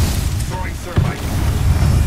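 An explosion booms with a burst of fire.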